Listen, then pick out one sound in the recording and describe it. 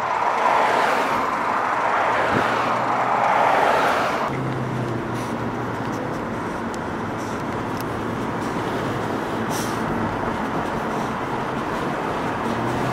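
A car drives along a road with a steady hum.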